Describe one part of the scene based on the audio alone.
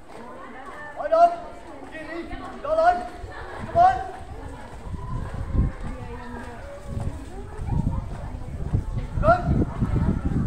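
Young women shout loud calls in unison outdoors.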